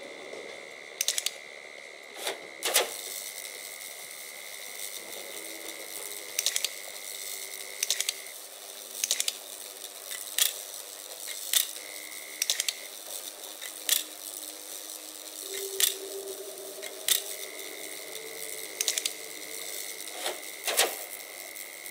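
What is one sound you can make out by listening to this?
Switches click sharply, again and again.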